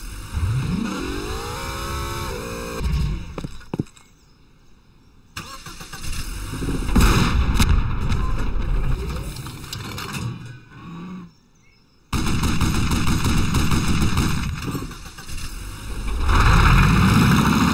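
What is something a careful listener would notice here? An armoured vehicle's engine rumbles as it drives.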